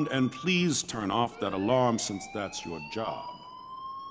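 A man speaks firmly.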